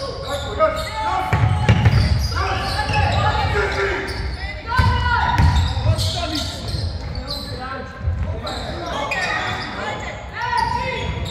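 Sneakers squeak sharply on a wooden court in an echoing hall.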